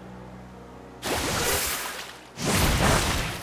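A rushing blast of water crashes loudly in bursts.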